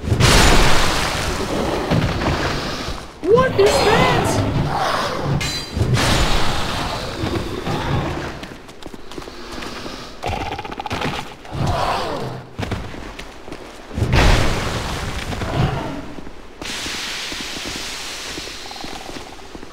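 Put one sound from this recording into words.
A heavy sword swings and strikes with dull thuds.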